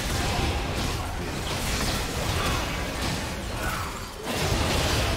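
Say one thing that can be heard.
Spell blasts and hits crackle and boom in a busy video game battle.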